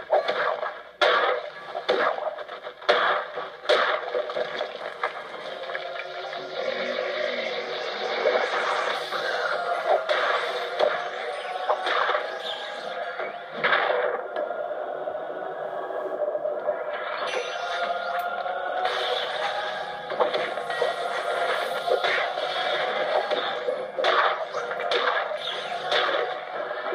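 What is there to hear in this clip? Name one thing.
Game music plays steadily through a speaker.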